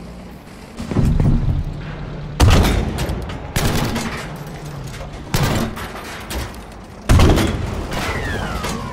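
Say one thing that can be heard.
A tank cannon fires with heavy booming blasts.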